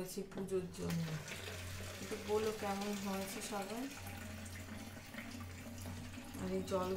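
Water trickles from a tap into a plastic bottle.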